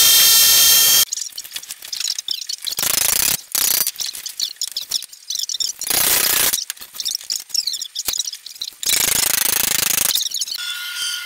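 A hammer strikes metal clamped in a vise.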